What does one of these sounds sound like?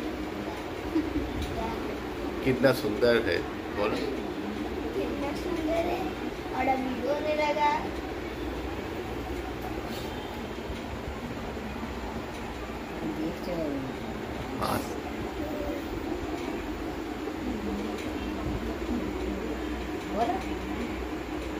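A woman speaks softly and laughs close by.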